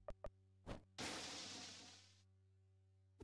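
A rushing electronic sound effect bursts out and fades away.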